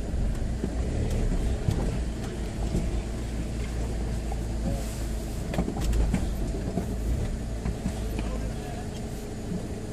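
A vehicle engine runs low as the vehicle creeps forward.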